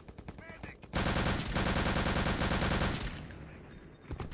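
A submachine gun fires rapid bursts at close range.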